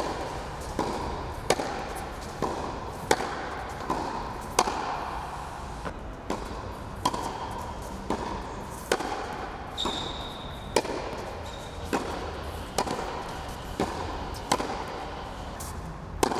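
A tennis racket strikes a ball with sharp pops at a steady pace.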